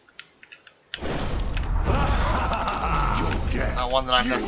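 Magic blasts crackle and burst in a fight.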